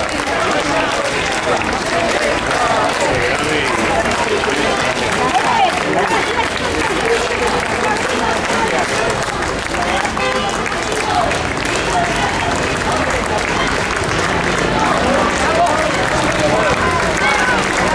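A crowd cheers and chatters outdoors.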